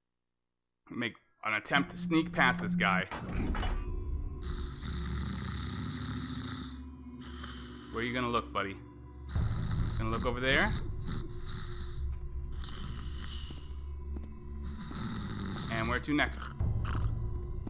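A man talks close to a microphone, now and then.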